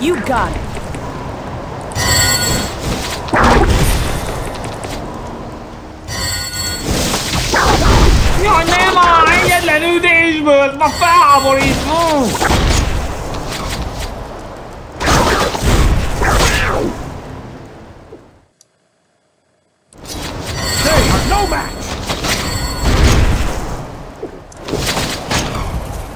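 Magic spells crackle and whoosh in bursts.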